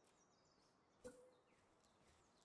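A short game chime rings out.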